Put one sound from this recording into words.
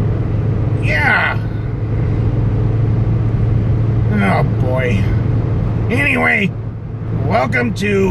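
A car engine hums steadily with a low road rumble from inside the car.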